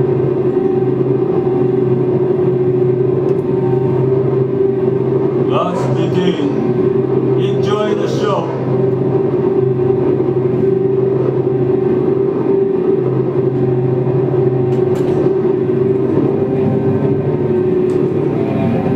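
A steady electronic drone hums throughout.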